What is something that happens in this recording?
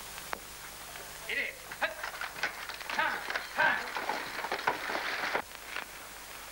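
A horse-drawn coach rattles along with clopping hooves.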